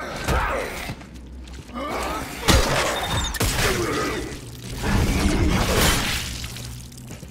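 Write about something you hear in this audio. A creature shrieks and snarls up close.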